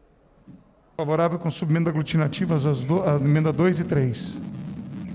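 A man speaks calmly into a microphone, heard through loudspeakers.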